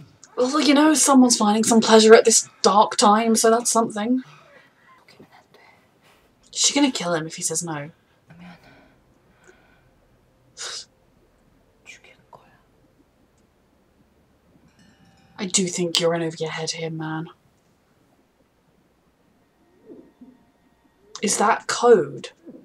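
A young woman talks to a microphone close up, in bursts with pauses.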